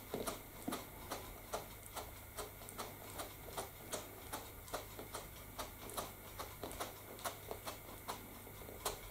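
A sponge dabs onto a board with quick tapping knocks.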